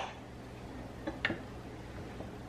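Pieces of butter drop softly into a plastic bowl.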